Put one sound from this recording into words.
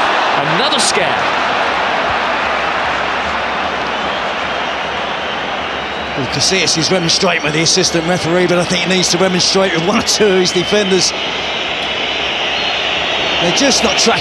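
A large stadium crowd murmurs and chants steadily.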